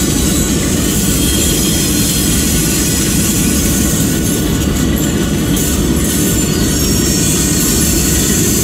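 Train wheels clatter and rumble along the rails.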